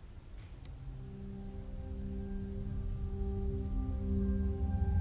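Sustained electronic tones join in and hold steady.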